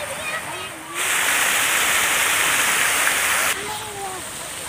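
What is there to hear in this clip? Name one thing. Fountain jets splash and hiss loudly.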